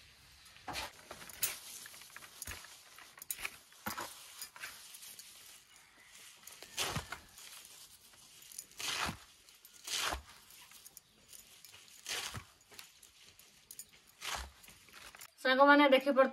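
Fresh leaves rustle and crunch as hands crush them.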